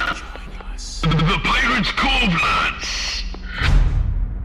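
An animatronic fox speaks in a rasping, distorted voice.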